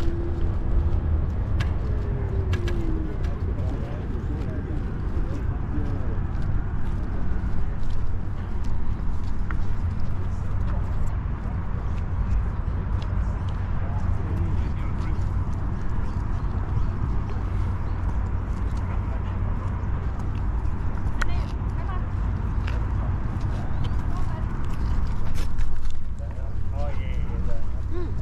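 Small wheels rumble over paving stones.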